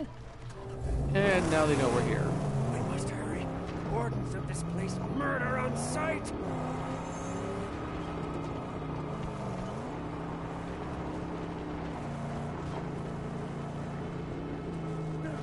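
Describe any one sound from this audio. A buggy engine revs and roars as it drives.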